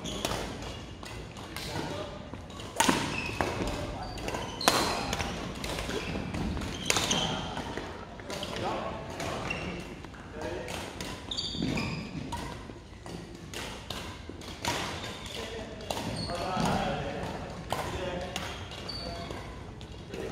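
Badminton rackets strike a shuttlecock with sharp, echoing smacks.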